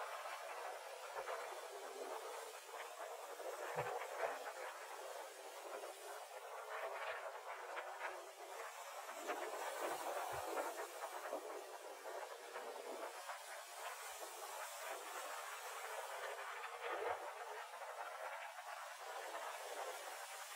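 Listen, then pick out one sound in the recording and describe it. Strong wind gusts outdoors.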